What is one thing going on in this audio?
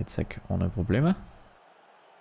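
A man speaks animatedly and close into a microphone.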